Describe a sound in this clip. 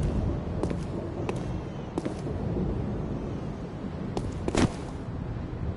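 Footsteps clack on a stone floor.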